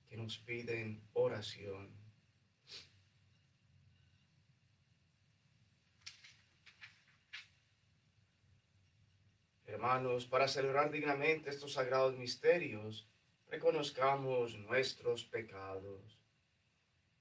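A man prays aloud in a calm, chanting voice, close to a microphone.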